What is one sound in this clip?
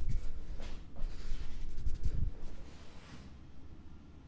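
Hands rub and rustle through hair close by.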